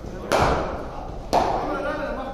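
A cricket bat strikes a ball indoors.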